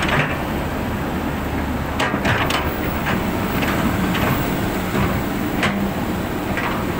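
An excavator bucket scrapes and thuds into dry soil.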